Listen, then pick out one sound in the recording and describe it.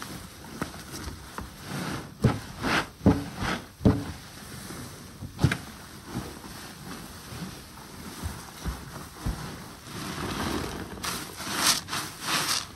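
Gloved hands squish and slosh cloth in soapy water.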